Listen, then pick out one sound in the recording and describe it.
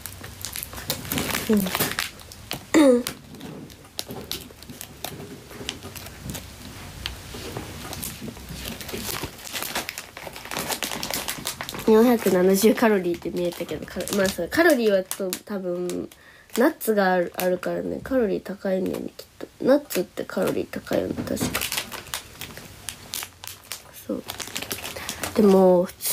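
A young woman talks softly and casually close to a microphone.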